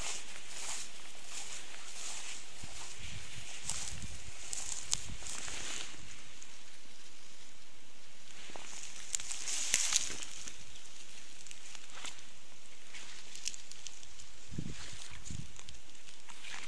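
Tall grass and weeds rustle and swish as someone pushes through them.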